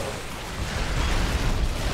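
Weapons fire and explosions rumble in a battle.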